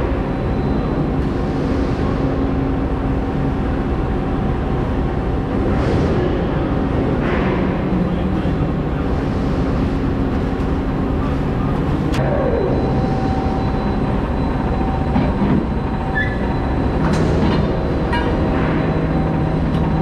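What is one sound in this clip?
An overhead crane hums steadily as it travels in a large echoing hall.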